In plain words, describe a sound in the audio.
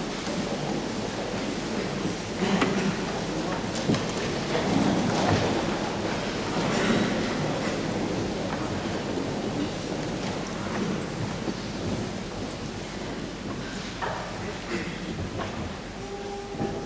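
A choir sings together in a large echoing hall.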